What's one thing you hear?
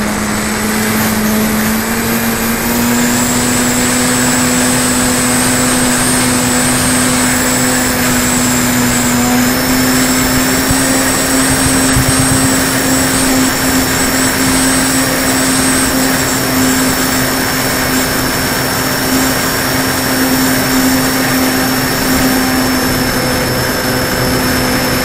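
Wind rushes past a model airplane in flight.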